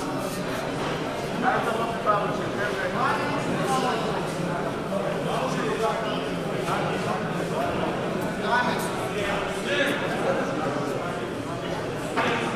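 A crowd of men murmurs and chatters in a large echoing hall.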